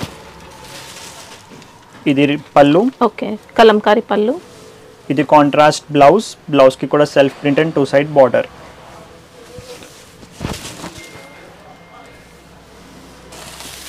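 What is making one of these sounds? Fabric rustles as it is unfolded and spread out.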